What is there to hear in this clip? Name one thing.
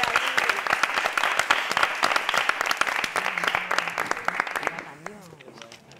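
A group of people clap and cheer loudly.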